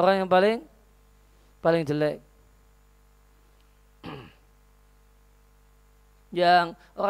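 A man speaks slowly through a microphone, in short phrases with long pauses.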